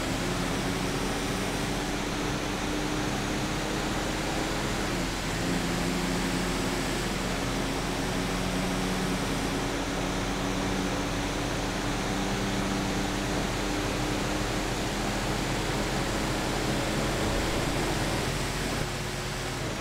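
Several heavy engines rumble steadily as vehicles drive along.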